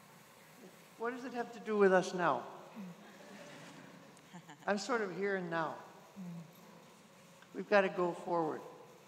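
An elderly woman speaks slowly and expressively into a microphone, heard over a loudspeaker in a large room.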